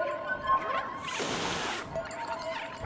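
A cat hisses sharply.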